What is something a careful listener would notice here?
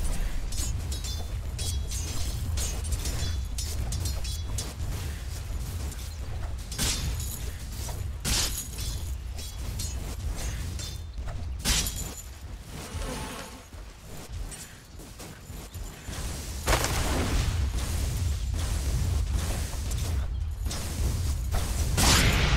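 Magic spells burst with whooshing blasts.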